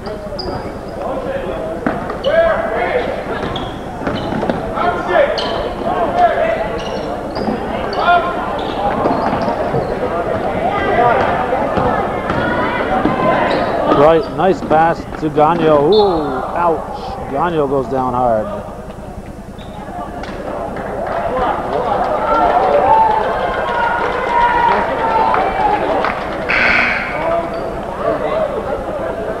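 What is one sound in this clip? A crowd of people talks and shouts loudly throughout, echoing in a large hall.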